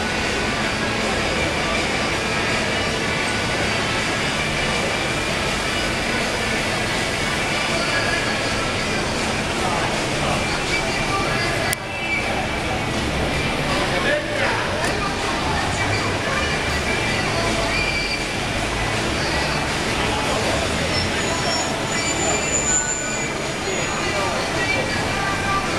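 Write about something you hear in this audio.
A fountain splashes and gushes steadily nearby, outdoors.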